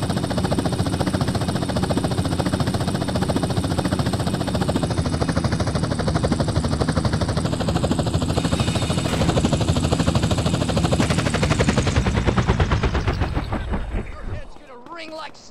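A helicopter's rotor thumps loudly and steadily, then winds down.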